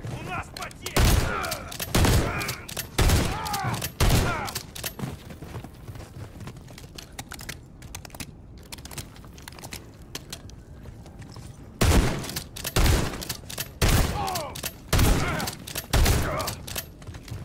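A shotgun fires heavy single blasts that echo.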